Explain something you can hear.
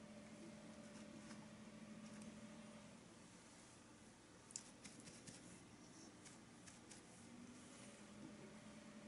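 A paintbrush softly scrapes and dabs on canvas.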